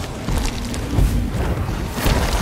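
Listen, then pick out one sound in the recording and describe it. A muffled explosion bursts underwater.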